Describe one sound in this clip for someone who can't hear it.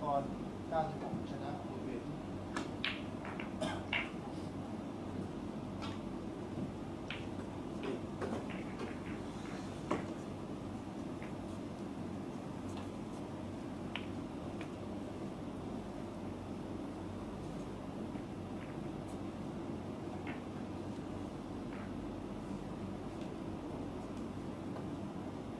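Snooker balls click softly against each other as they are placed on the table.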